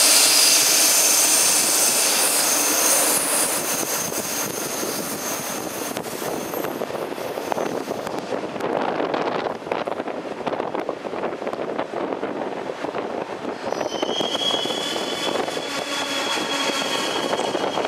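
Train brakes hiss and squeal shrilly.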